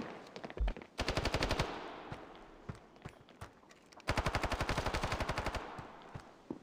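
Footsteps patter quickly across hard ground.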